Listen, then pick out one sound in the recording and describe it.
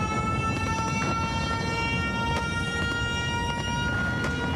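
Rifle shots crack in the open air.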